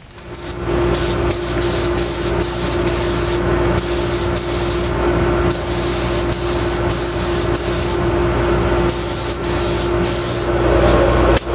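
A spray gun hisses in short bursts.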